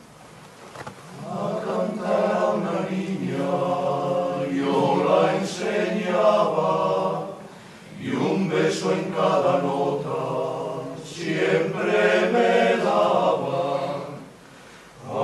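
A choir of men sings together in harmony, in a large hall.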